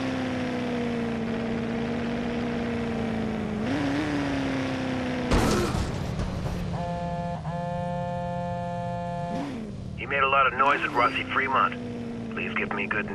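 A car engine hums steadily and revs up now and then.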